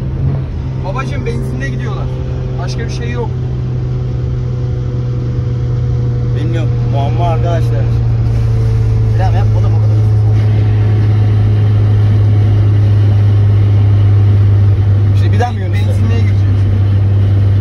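A young man talks with animation close by inside the car.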